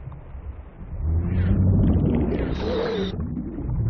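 A swimmer surges through water with a loud rushing whoosh.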